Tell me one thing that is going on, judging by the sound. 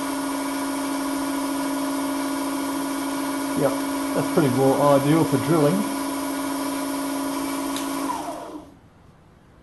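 An electric motor whirs steadily with a high hum, then winds down and stops.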